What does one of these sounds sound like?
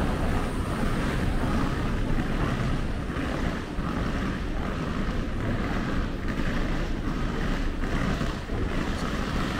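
Footsteps walk on hard pavement.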